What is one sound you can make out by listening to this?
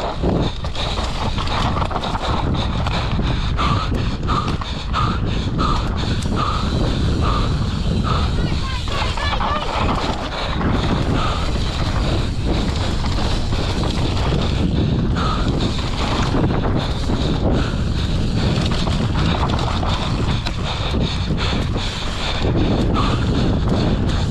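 Wind rushes past loudly, as if outdoors at speed.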